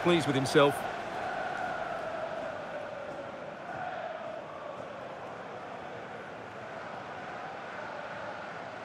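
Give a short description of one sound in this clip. A large crowd cheers and roars steadily in a big stadium.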